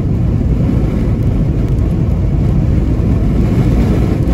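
Raindrops patter lightly on a windshield.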